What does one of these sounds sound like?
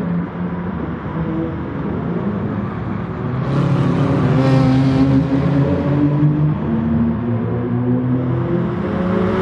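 Racing car engines roar at high revs, changing pitch as they shift gears.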